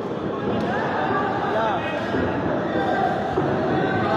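Punches thud on boxing gloves.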